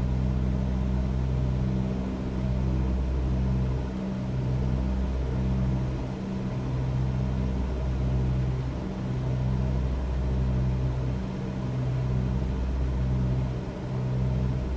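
A small propeller plane's engine drones steadily and loudly.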